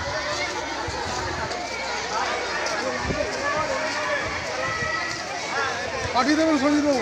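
A crowd of young girls chatters nearby.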